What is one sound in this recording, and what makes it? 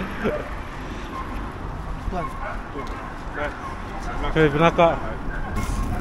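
An older man talks with a younger man.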